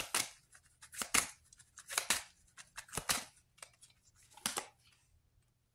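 Playing cards shuffle and slap together in quick bursts.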